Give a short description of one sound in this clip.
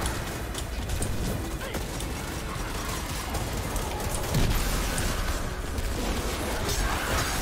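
Electric blasts crackle and burst.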